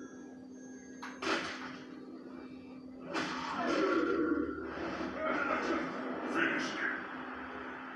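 Heavy blows and crunching bone sounds from a fighting game play through a television speaker.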